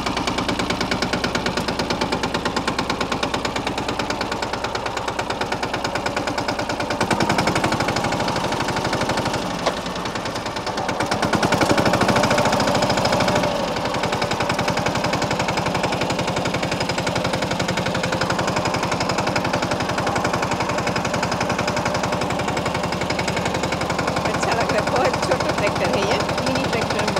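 A small tractor's diesel engine chugs steadily close by.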